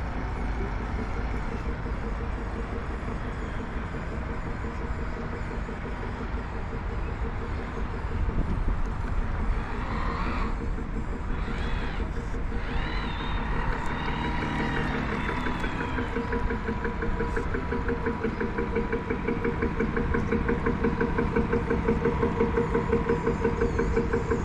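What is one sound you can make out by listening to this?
A small model boat motor whirs and buzzes nearby.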